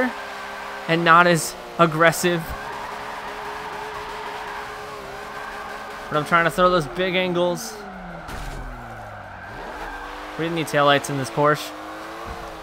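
Tyres squeal as a car drifts through corners.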